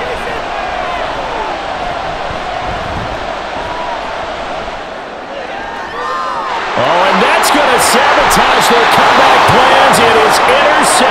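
A large stadium crowd cheers and roars, swelling louder.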